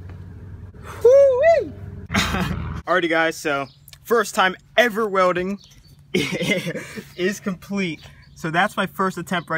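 A young man talks excitedly and close up.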